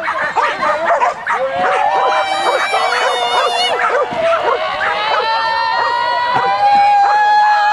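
Several dogs bark excitedly and rapidly outdoors.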